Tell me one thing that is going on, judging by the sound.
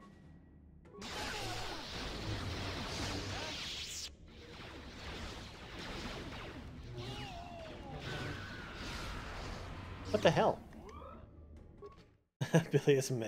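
Lightsabers hum and clash in a fight.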